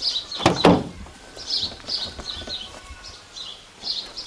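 A car door unlatches and swings open.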